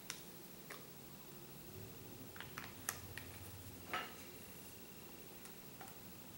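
A makeup brush taps and clicks softly against a small container.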